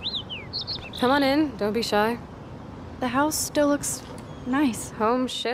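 A young woman speaks quietly and thoughtfully, close by.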